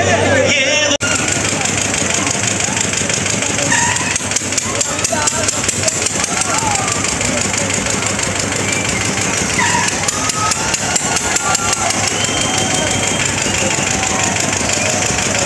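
Water splashes as children paddle small boats.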